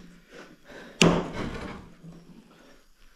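A wooden door swings open with a knock.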